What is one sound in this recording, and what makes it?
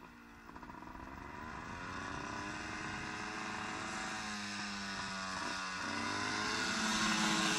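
A motorcycle engine drones as it approaches, growing louder and shifting pitch.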